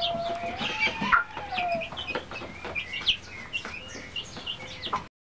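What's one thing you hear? Chicks peck at grain.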